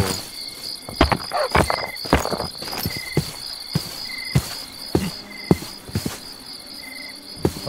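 Blocks are broken and placed with short, crisp clicks.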